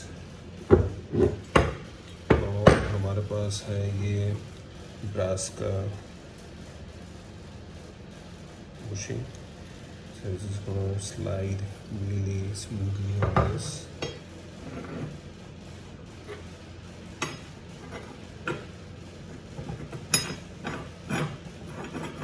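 Metal parts clink and tap against each other.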